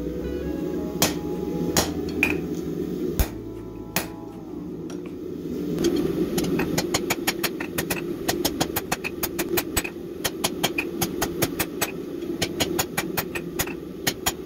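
A hammer strikes metal on an anvil with ringing clangs.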